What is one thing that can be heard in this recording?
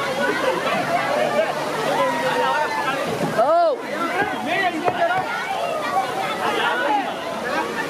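A crowd of children shouts and screams excitedly outdoors.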